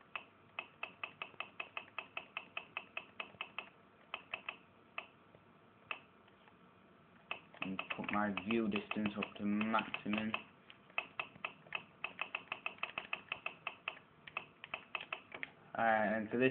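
A game menu ticks rapidly as a settings slider is moved.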